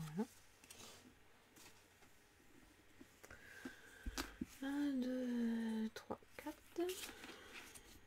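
Trading cards rustle and slide against each other in a hand.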